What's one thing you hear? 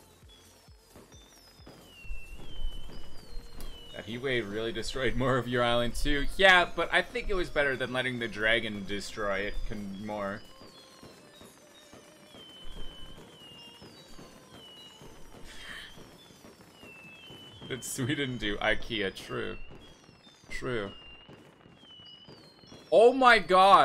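Fireworks whistle and pop in quick succession.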